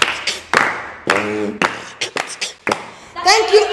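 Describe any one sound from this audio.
Children clap their hands in quick bursts.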